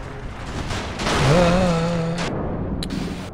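A car crashes with a loud rumbling thud.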